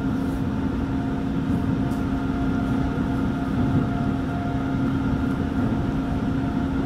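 The motors of an electric commuter train hum steadily.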